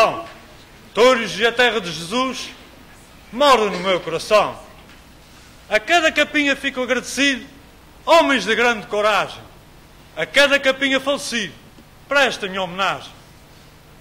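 A man declaims loudly in short phrases through a microphone in a hall.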